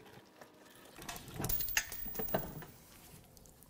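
Metal parts clink and rattle as a man handles an engine.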